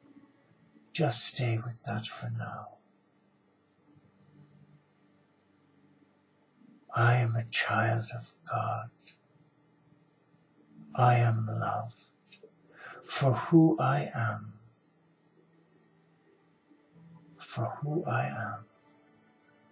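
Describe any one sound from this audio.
An elderly man speaks calmly and slowly into a nearby microphone, pausing between phrases.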